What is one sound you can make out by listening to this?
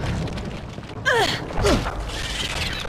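A creature lets out a shrill, falling screech.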